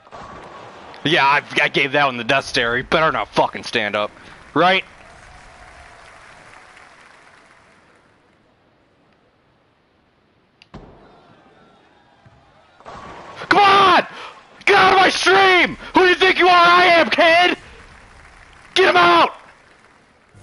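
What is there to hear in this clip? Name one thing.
Bowling pins crash and scatter.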